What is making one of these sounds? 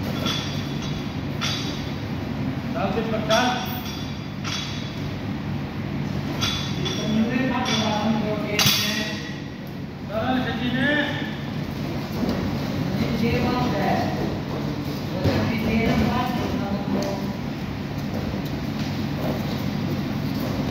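Wrestlers thud and shuffle on a padded mat.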